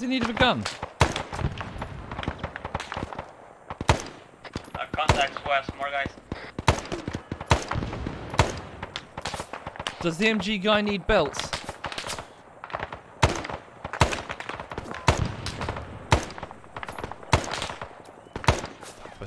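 Rifle shots crack sharply, one after another, with a short echo.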